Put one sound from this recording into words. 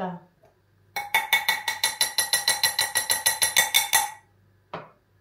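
A fork beats quickly against a bowl.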